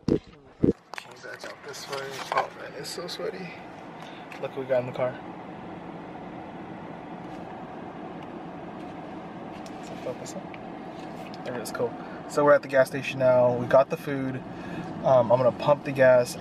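A car's engine hums steadily from inside the cabin.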